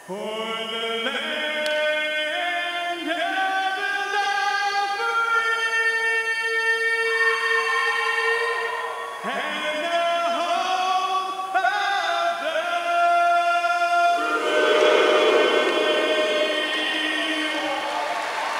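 A man sings loudly and with feeling into a microphone, heard through loudspeakers.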